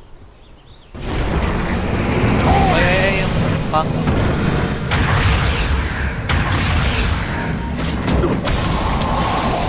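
Magic blasts and weapon blows clash in a noisy fight.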